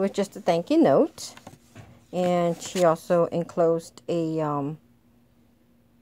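Paper rustles as cards are handled close by.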